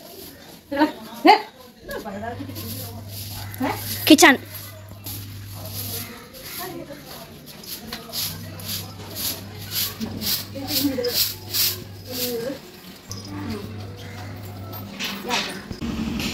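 A broom brushes and taps against a wall.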